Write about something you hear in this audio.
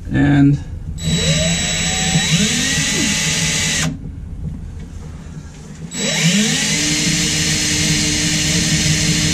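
A cordless power tool whirs up to speed and runs steadily in two long bursts.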